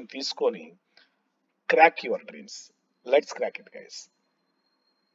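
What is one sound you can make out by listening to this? A man speaks calmly and cheerfully over an online call.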